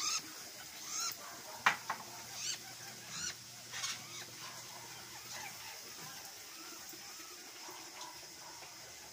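Toucans give short, croaking calls nearby.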